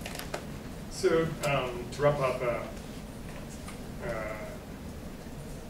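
A man speaks briefly into a microphone in a large hall, heard through loudspeakers.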